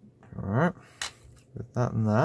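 Plastic phone parts click as they are pressed together.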